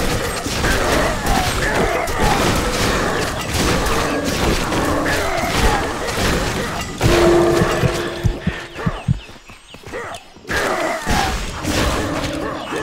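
Magic spells crackle and burst.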